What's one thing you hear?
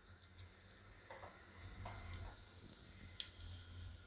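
Grains sizzle gently in hot oil.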